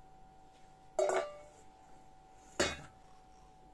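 A metal bowl clanks against another metal bowl.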